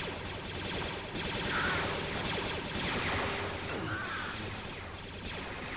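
A lightsaber hums and buzzes.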